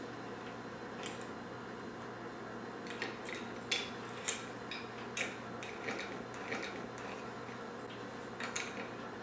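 Ceramic calendar tiles clack and tap against a ceramic holder as they are swapped.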